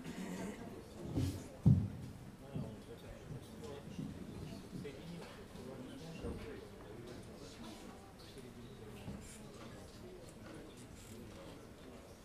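A saxophone plays.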